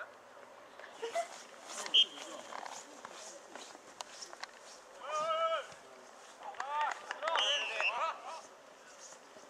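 Young men shout and call out across an open field outdoors.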